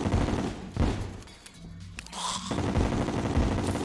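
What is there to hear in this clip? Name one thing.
Magic sparkles crackle and chime in a video game.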